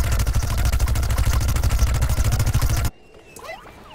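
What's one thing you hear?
A rapid-fire video game weapon shoots a fast burst.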